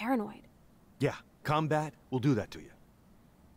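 A man speaks in a low, firm voice.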